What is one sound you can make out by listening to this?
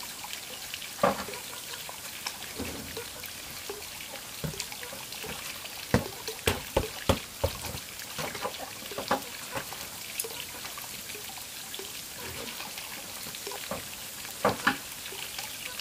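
Objects knock and clatter as a woman moves them about.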